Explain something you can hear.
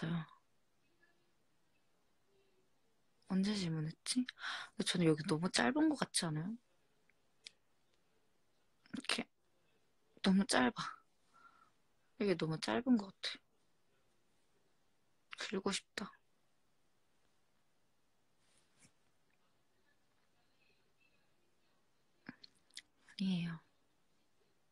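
A young woman speaks softly and close to a phone microphone, in short bursts with pauses.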